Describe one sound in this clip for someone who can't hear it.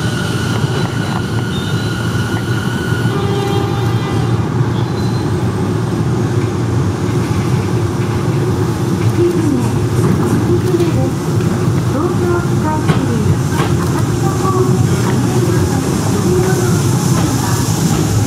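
A train approaches and rumbles into a station.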